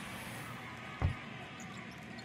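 A wooden cupboard door bumps open.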